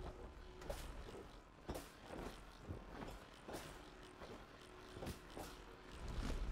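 Light footsteps patter quickly.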